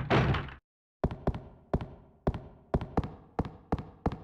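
Footsteps tap briskly on a hard floor in an echoing corridor.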